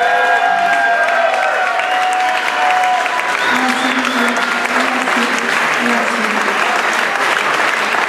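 Electric guitars play along with the band.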